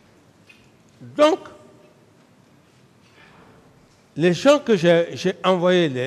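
A middle-aged man speaks emphatically into a microphone.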